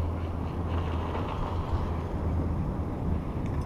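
A chairlift's wheels rumble and clatter over a tower's pulleys.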